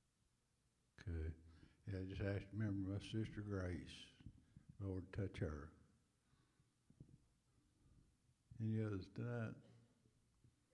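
A man speaks through a microphone in an echoing hall, in bursts with long pauses.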